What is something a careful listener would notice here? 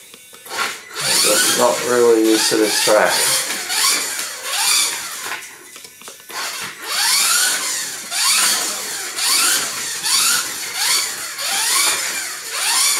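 A small electric motor whines loudly, revving up and down as a toy car races past.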